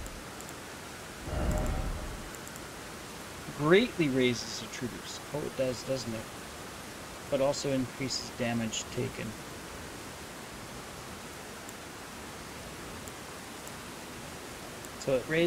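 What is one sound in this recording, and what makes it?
Soft menu clicks sound as items are selected.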